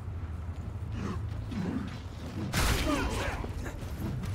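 A blade slashes and strikes a creature with heavy, wet impacts.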